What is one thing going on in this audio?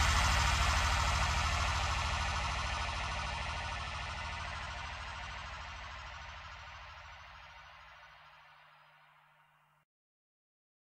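A synthesizer plays a fast, buzzy, pulsing bass pattern that slowly fades out.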